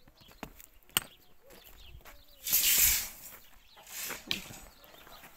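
Bolt cutters snap through a steel bar with a sharp click.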